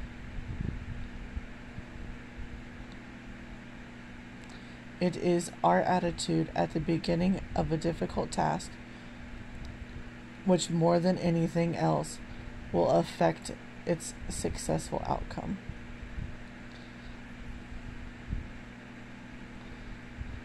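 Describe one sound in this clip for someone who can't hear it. A crochet hook rustles softly through yarn.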